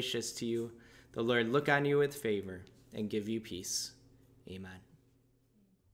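A man speaks warmly and with animation, close to a microphone.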